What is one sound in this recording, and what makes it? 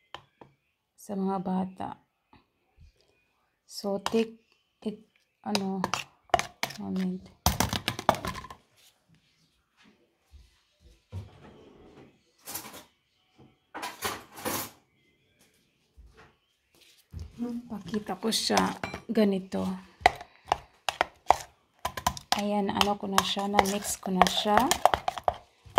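A metal spoon stirs and scrapes inside a plastic jar.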